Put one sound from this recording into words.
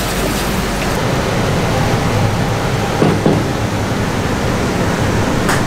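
A wooden paddle stirs and knocks in a pot of boiling noodles.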